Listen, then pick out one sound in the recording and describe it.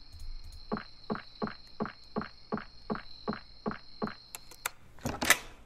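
Footsteps tap at a steady, even pace.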